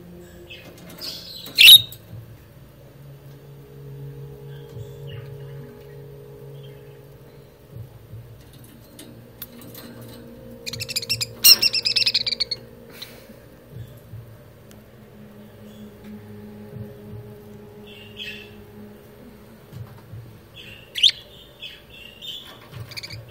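Budgerigars chirp and warble close by.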